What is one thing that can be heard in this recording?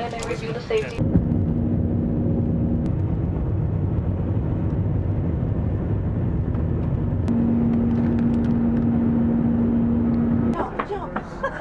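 A jet engine roars steadily inside an airliner cabin.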